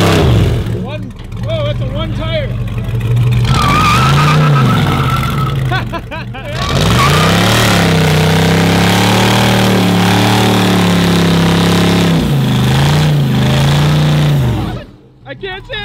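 A car engine revs loudly and roars.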